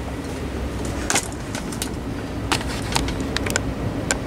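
Paper crinkles and rustles up close.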